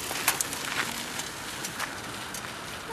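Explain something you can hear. A bicycle rattles and clicks over bumps.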